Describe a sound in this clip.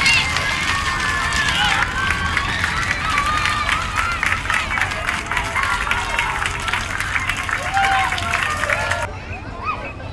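A large crowd of children claps in rhythm.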